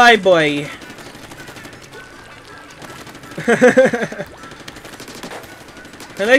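A game's paint gun squirts ink in quick wet bursts.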